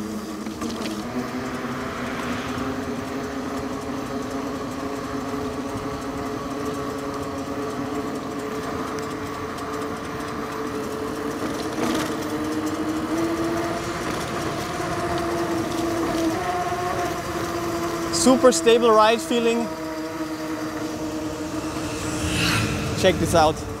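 Wide tyres hum on asphalt.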